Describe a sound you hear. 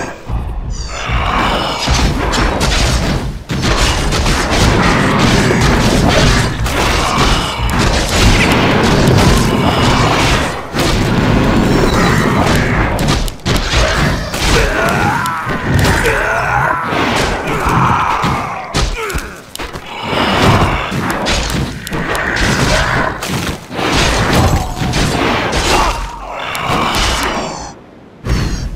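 Weapons clash in a busy fight.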